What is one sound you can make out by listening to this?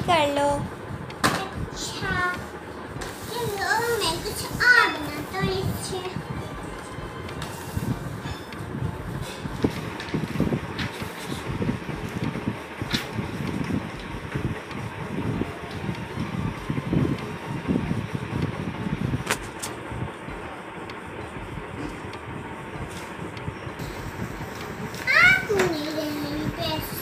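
A young boy speaks brightly up close.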